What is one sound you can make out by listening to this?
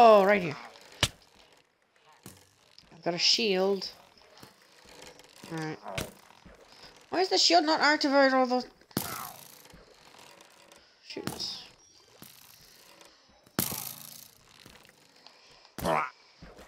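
Sharp thuds of blows and arrow hits sound now and then.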